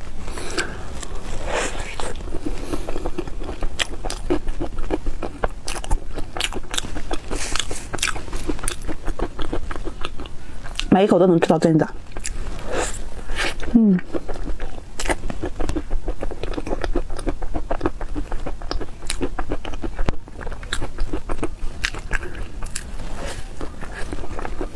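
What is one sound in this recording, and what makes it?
A young woman chews a soft, creamy cake close to a microphone, with wet mouth sounds.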